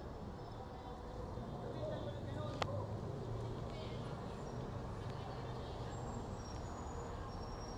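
City traffic rumbles steadily below.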